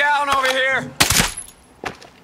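A suppressed pistol fires a single shot.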